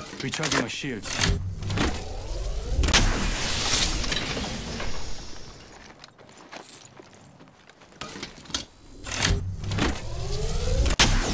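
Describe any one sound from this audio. A handheld energy cell charges up with an electric crackle.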